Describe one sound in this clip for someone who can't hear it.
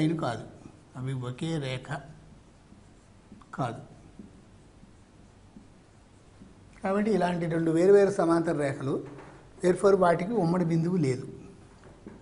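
An elderly man lectures calmly, close to a microphone, with pauses.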